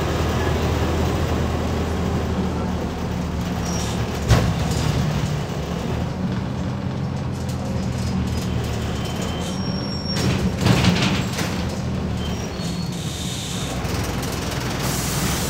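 A bus engine hums low and steady while driving.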